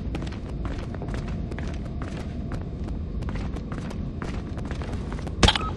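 Soft footsteps tap quickly on a hard floor.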